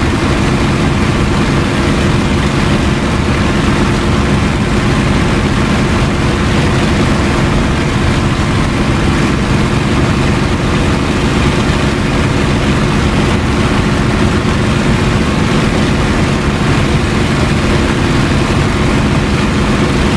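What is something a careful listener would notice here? A propeller plane's engine roars steadily from inside the cockpit.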